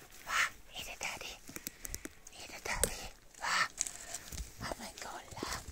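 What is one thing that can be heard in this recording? A dog's claws scratch and scrape against tree bark.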